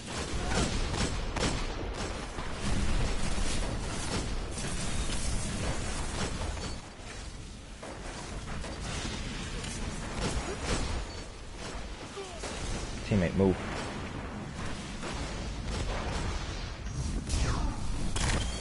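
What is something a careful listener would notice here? Guns fire in rapid bursts with sharp cracks.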